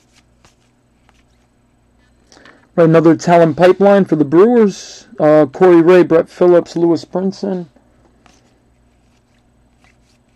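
Trading cards softly slide and tap against each other in hands.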